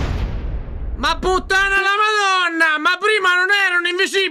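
A man talks with animation into a microphone.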